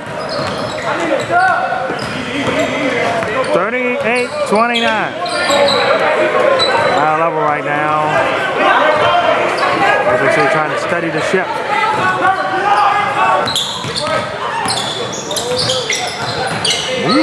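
Young men call out and shout to each other in a large echoing hall.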